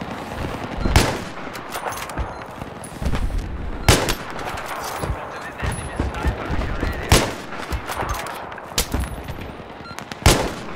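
A rifle fires loud, sharp single shots, a few seconds apart.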